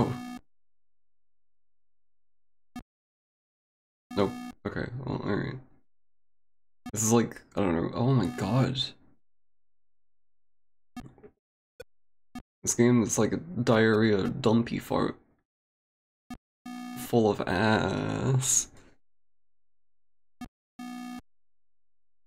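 A retro video game gives short electronic beeps as a ball bounces off paddles.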